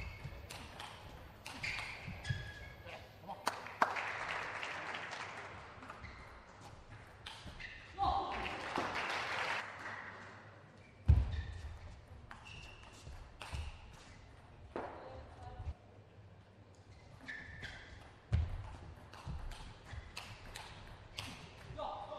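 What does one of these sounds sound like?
A table tennis ball clicks back and forth off bats and the table.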